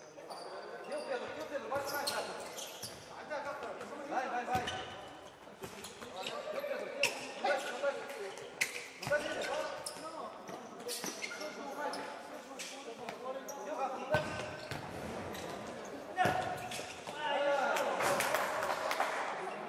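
A ball thuds as it is kicked, echoing in a large hall.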